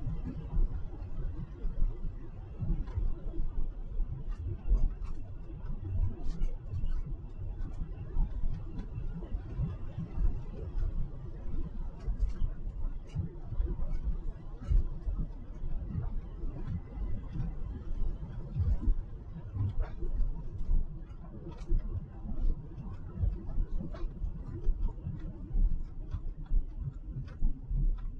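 A car drives steadily along a road with a low rumble.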